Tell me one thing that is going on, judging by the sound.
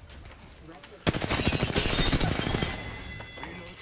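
Rapid gunfire rattles in a loud burst.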